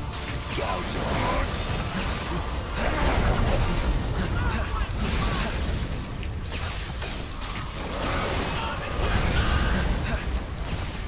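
Swords clash and slash in quick, heavy blows.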